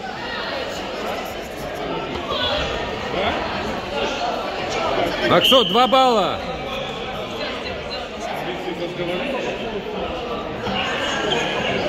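Many young spectators chatter in a large echoing hall.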